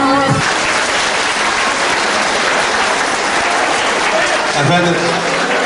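A crowd chatters and cheers loudly.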